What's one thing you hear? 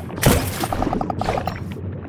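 A burst of rushing water swirls loudly.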